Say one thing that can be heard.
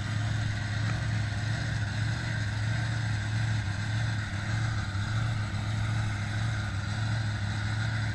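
A heavy vehicle engine rumbles steadily in the distance.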